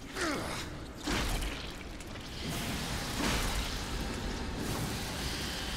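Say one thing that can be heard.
A heavy blade slashes and strikes repeatedly in a fight.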